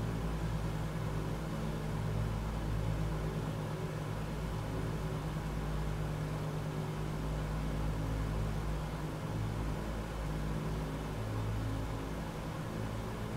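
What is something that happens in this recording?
Aircraft propeller engines drone steadily with a deep, even hum.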